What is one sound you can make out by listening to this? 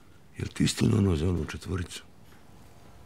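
An older man asks a question quietly, close by.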